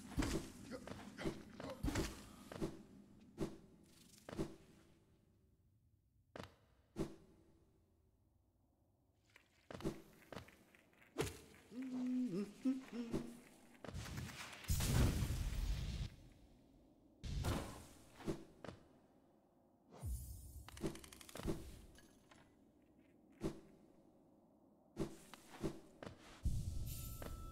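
Short, sharp game sound effects thud and whoosh again and again.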